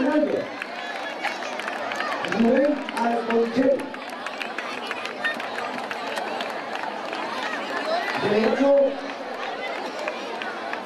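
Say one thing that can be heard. A crowd of children and adults chatters outdoors.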